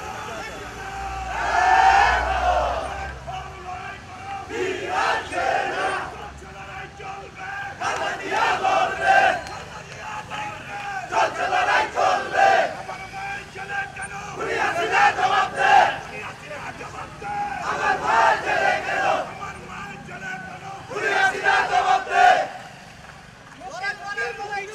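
A crowd of men chants slogans in loud rhythmic bursts outdoors.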